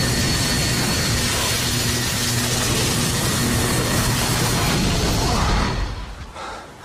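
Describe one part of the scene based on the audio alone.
Fire roars loudly.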